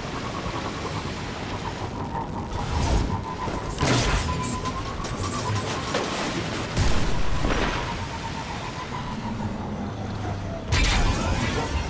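A hover bike's engine whines steadily as it speeds along.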